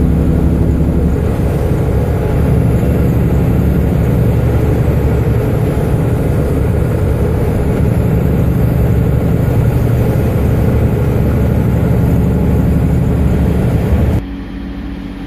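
Tyres roar loudly on the road.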